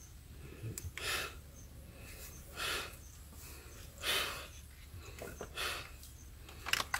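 An elderly man breathes heavily and raspily, close by.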